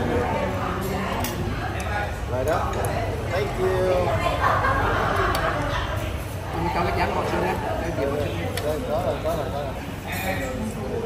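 Adults talk and chatter nearby.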